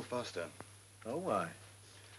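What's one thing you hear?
A second man replies in a calm, low voice.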